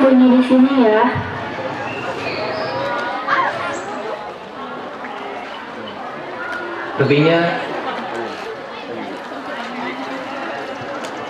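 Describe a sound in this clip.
Young women chat nearby among an outdoor audience.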